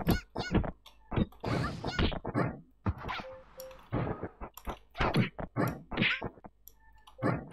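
Sword strikes and magic blasts clash and whoosh in quick bursts.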